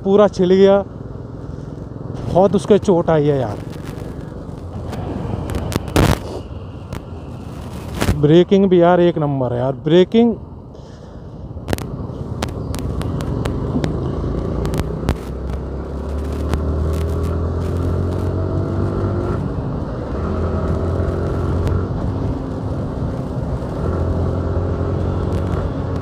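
A motorcycle engine hums and rises in pitch as the bike speeds up.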